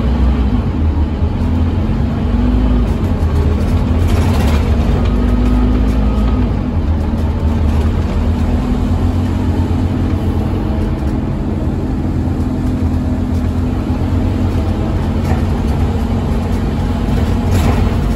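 Tyres hiss on a wet road beneath a bus.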